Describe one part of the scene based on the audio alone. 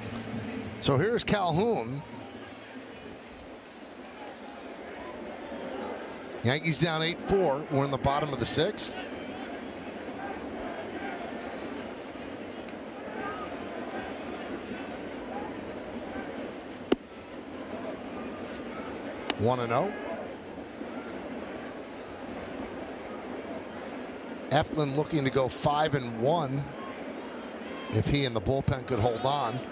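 A stadium crowd murmurs steadily outdoors.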